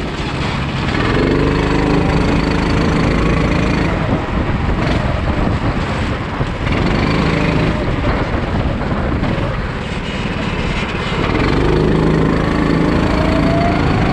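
A small kart engine buzzes loudly close by, revving up and down through the bends.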